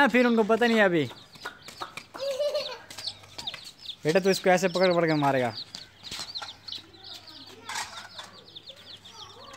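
Chicks cheep rapidly and high.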